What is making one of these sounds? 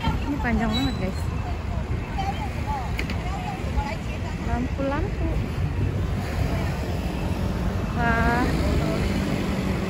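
Traffic hums faintly in the distance.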